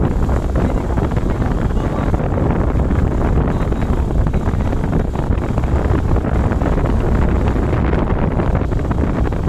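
A scooter engine hums steadily while riding along a road.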